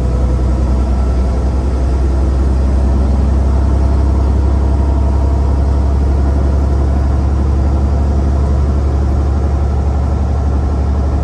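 A large engine drones steadily from inside a truck cab.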